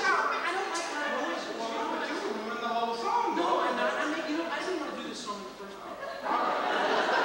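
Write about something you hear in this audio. Young performers speak loudly to an audience in a large echoing hall.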